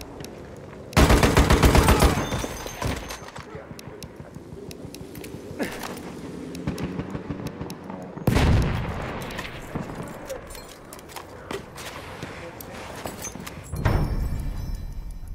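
A machine gun fires loud rapid bursts close by.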